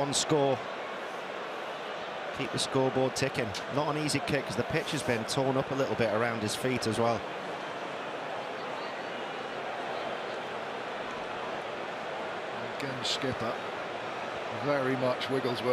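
A large stadium crowd murmurs steadily in the open air.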